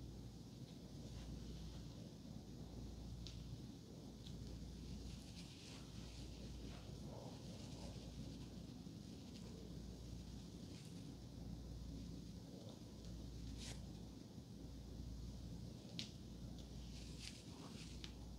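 A comb scratches softly through hair close to a microphone.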